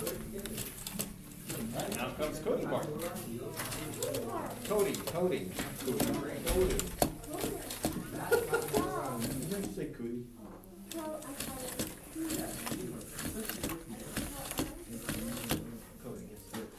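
A small toy motor whirs as a plastic model moves.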